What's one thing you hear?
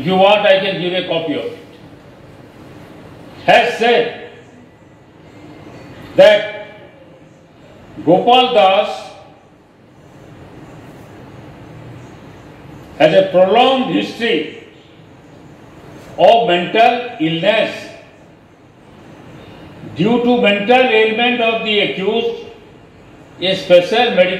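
An elderly man speaks slowly in short bursts with long pauses, heard through a microphone.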